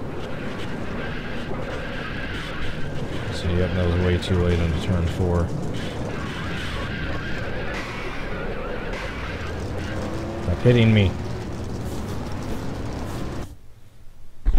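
Racing car engines roar steadily at high speed.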